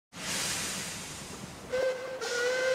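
A steam engine lets off a loud hiss of steam.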